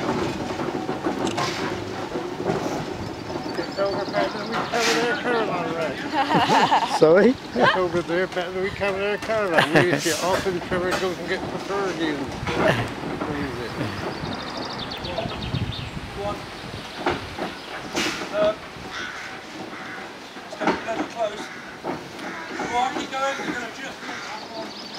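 A steam traction engine chugs slowly nearby.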